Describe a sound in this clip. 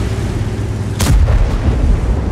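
A tank cannon fires with a sharp, loud boom.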